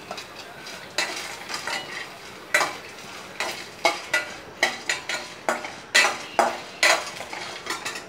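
A metal spatula scrapes and clinks against a steel pan.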